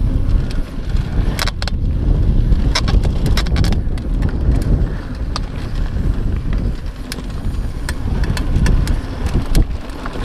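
Bicycle tyres crunch over a rough dirt trail.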